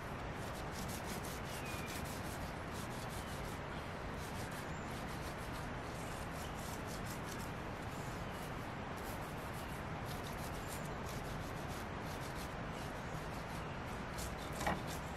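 A sponge scrubs rhythmically against a metal grill grate.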